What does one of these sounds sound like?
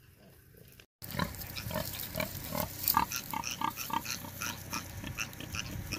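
Twigs and dry grass rustle as a pig walks through brush.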